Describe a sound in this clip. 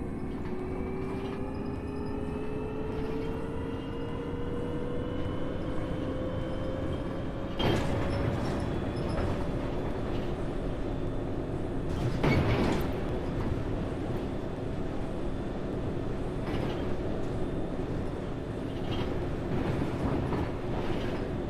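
A bus engine drones steadily and rises slowly in pitch as the bus gathers speed.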